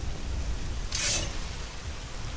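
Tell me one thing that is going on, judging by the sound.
A sword is drawn with a short metallic ring.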